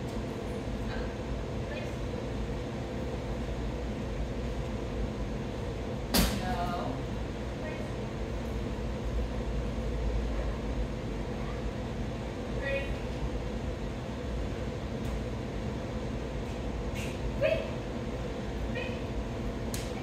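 A woman speaks short words to a dog.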